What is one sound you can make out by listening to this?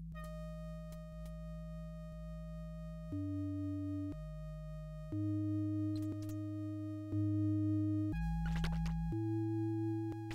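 Simple electronic game music plays in steady, held synth notes.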